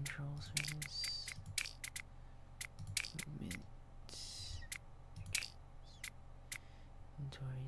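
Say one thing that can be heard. Short sharp menu clicks tick again and again as options are selected.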